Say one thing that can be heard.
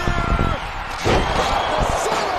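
A heavy body slams onto a wrestling mat with a thud.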